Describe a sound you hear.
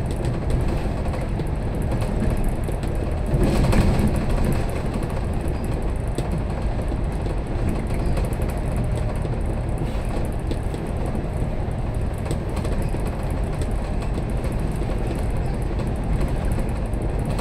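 A vehicle drives steadily through an echoing tunnel, its engine and tyres rumbling.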